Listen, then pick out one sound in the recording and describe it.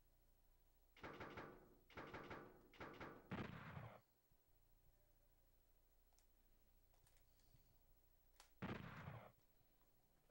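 Game menu sound effects blip and whoosh.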